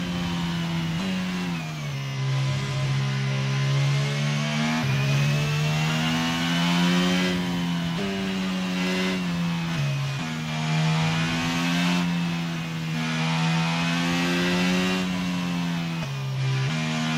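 A Formula 1 racing car's gearbox shifts up and down with sharp drops in engine pitch.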